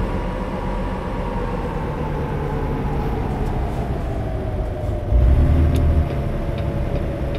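A truck engine drones steadily at low revs.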